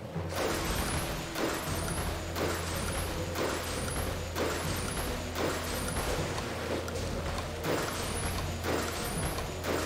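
Rain patters steadily on water.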